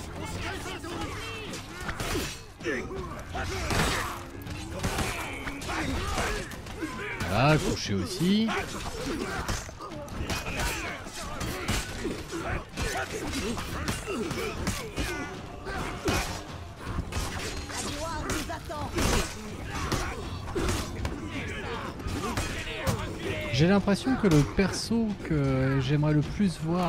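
A crowd of warriors shouts and yells throughout the fight.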